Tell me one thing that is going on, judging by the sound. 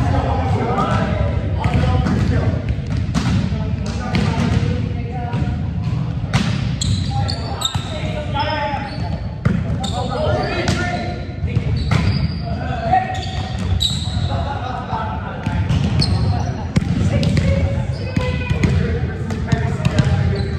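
A volleyball is bumped and hit with sharp slaps.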